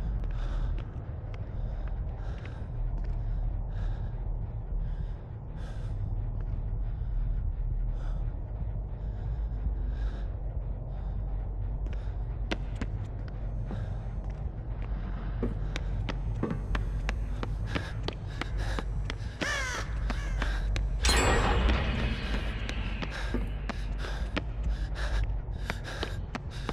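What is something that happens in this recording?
Footsteps tread steadily on a hard floor.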